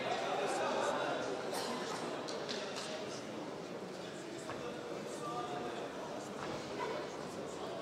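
A crowd murmurs and calls out in a large hall.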